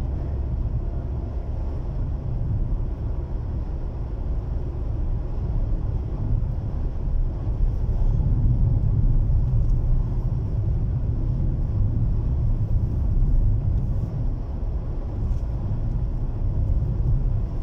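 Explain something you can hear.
A car's engine and road noise rumble low and steady from inside the car.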